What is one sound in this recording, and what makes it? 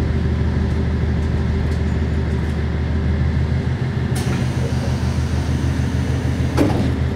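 A diesel railcar engine idles at a station, heard from inside the car.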